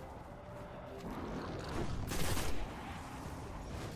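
A rifle fires a few loud shots.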